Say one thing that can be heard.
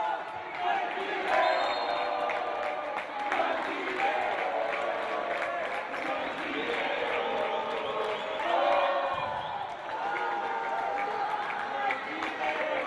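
A crowd in a large echoing hall chatters and cheers.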